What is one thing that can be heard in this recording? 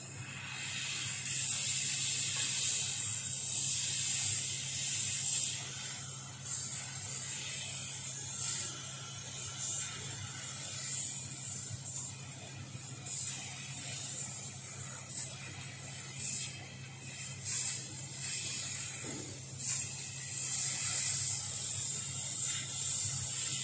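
A laser cutter's air assist hisses as it cuts through thin wood.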